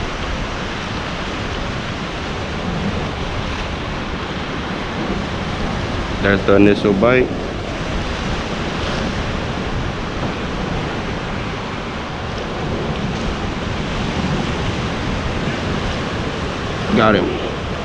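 Water laps and splashes against pier posts below.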